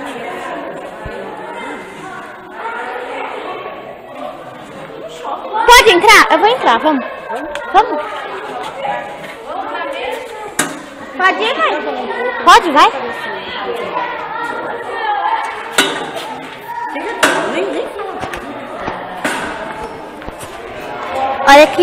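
Children talk and shout excitedly close by.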